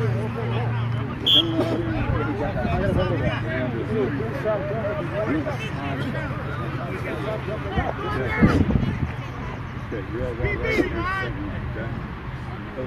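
Several young men talk and call out to each other outdoors.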